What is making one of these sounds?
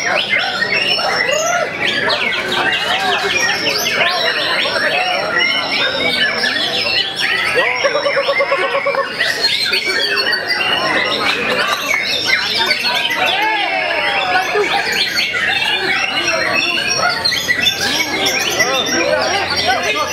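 Many caged songbirds chirp and trill loudly all at once.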